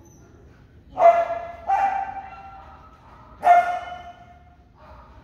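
A dog barks loudly in a large echoing hall.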